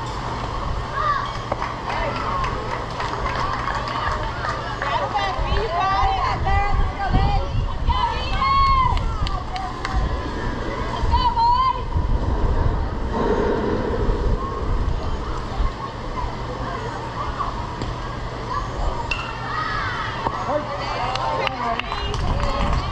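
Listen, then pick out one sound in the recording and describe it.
Young players and adults shout and call out across an open field.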